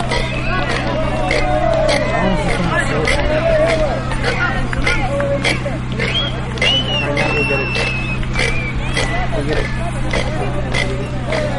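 Rattles and bells on dancers' costumes shake and jingle in a steady beat.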